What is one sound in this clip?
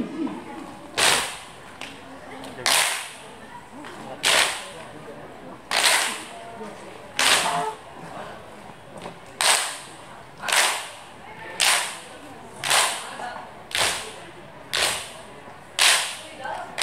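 Seated dancers clap their hands together in unison at a steady pace, in a large echoing hall.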